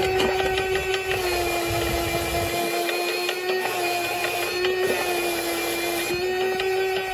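A shoe sole scrubs against a spinning brush.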